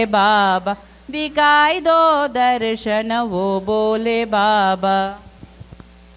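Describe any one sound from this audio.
A woman sings through a microphone and loudspeakers in a large hall.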